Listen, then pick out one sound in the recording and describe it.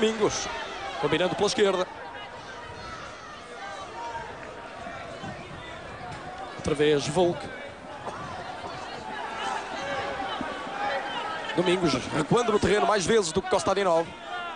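A stadium crowd murmurs steadily outdoors.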